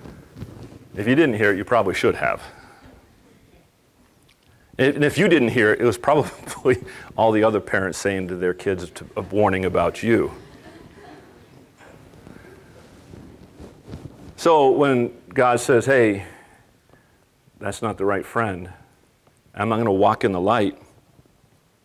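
A middle-aged man speaks calmly and clearly into a microphone, pausing between phrases, in a room with a slight echo.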